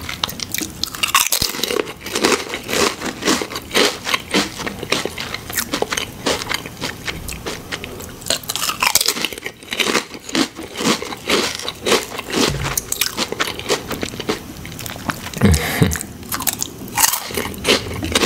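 Crisp potato chips crunch loudly and closely as a man bites and chews.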